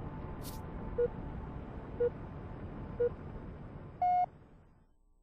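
Short electronic beeps count down once a second.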